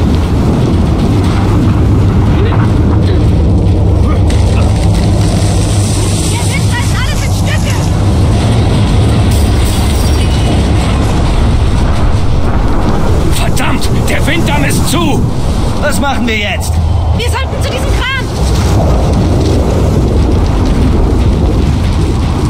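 A strong storm wind roars steadily.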